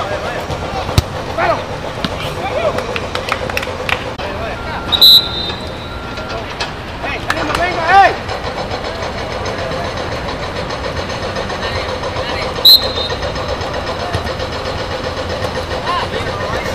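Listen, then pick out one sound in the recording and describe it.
A football thuds as it is kicked on artificial turf.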